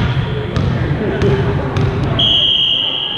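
A ball bounces on a hard floor in a large echoing hall.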